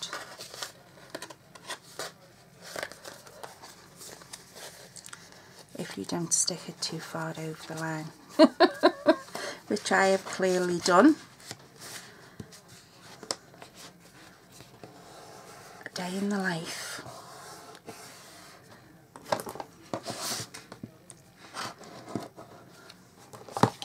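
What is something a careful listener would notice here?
Paper rustles and creases as it is folded by hand.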